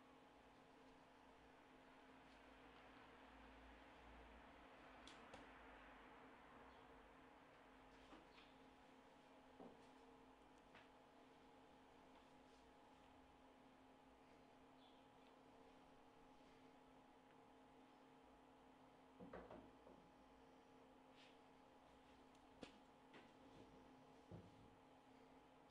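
A computer hums steadily nearby.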